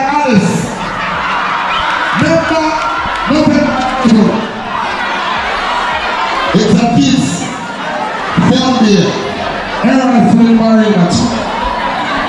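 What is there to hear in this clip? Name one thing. A large crowd of young students chatters and cheers.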